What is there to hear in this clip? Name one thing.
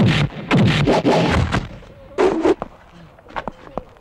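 A body crashes to the ground.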